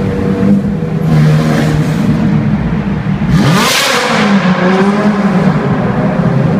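A car engine revs up and down sharply.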